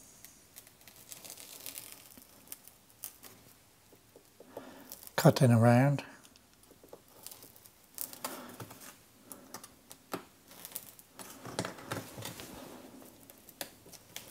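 A blade scrapes and scratches lightly on plastic.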